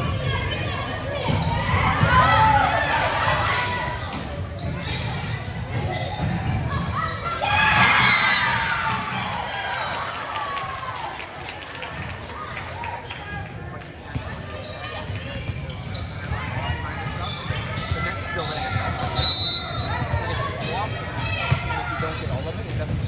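Young women players shout and cheer with excitement.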